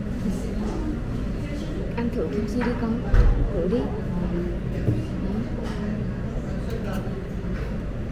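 Chopsticks click against a metal dish.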